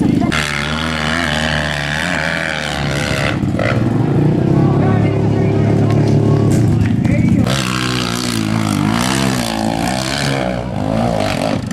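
A motorcycle engine revs hard, its roar rising and falling.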